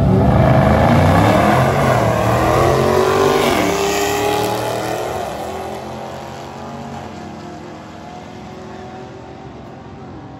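Two race car engines roar loudly as the cars speed away and fade into the distance.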